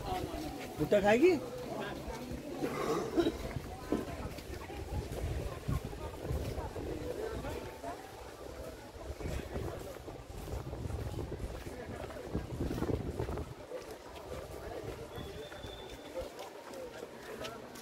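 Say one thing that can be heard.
Several men and women chatter nearby outdoors.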